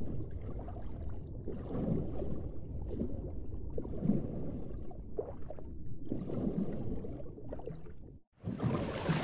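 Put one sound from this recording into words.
Water swirls and rumbles dully as a swimmer glides underwater.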